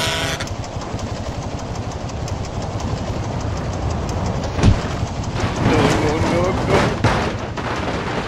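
A truck engine rumbles as it climbs.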